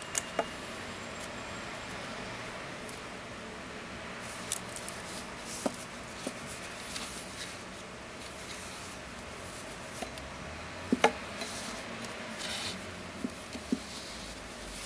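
Gloved hands handle a leather strap and metal buckle with soft rustles and faint clicks.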